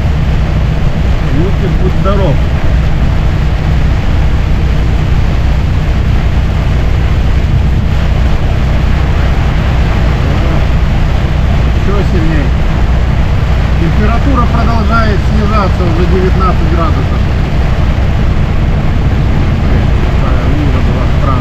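A car engine drones steadily.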